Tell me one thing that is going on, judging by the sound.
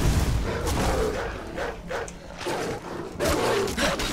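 Wolves snarl and growl.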